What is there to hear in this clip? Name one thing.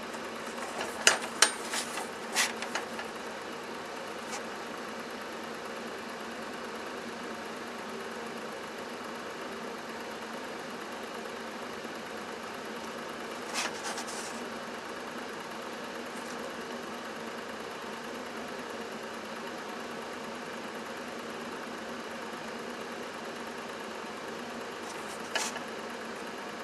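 A strip of leather knocks and rustles against a metal tool tip.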